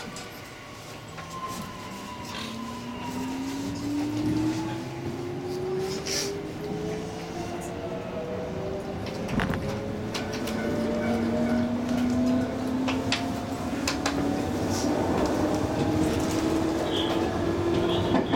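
An electric train's equipment hums and whines, with the whine slowly rising in pitch.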